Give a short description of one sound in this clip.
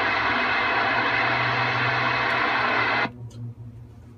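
Radio static hisses loudly and steadily, then cuts off.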